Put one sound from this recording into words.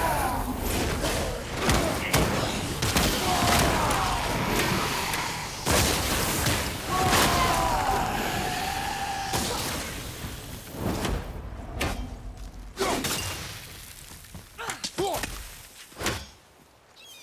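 Heavy blows and impacts thud and crack in a fight.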